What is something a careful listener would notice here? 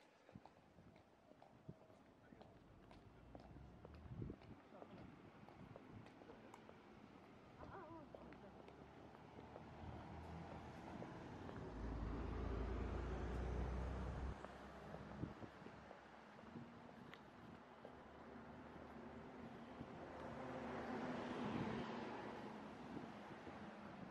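Traffic rumbles steadily along a nearby road outdoors.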